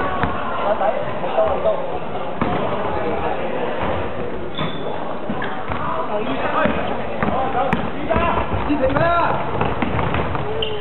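A basketball bounces on the floor with echoing thuds.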